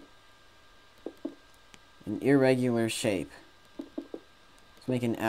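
Stone blocks are placed with soft, short thuds.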